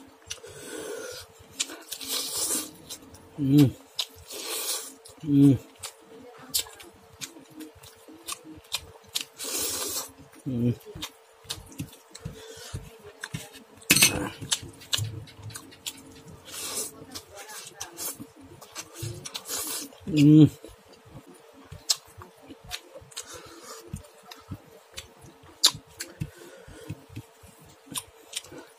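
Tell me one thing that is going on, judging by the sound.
A man chews food noisily and smacks his lips close by.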